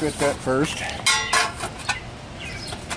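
A metal ring clinks against a copper pipe.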